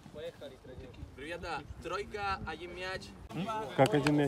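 Men talk and call out in a group outdoors.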